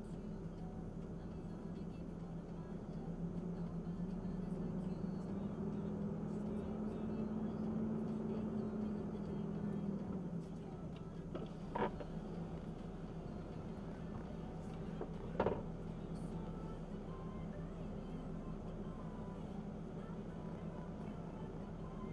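A truck engine hums steadily as it drives slowly.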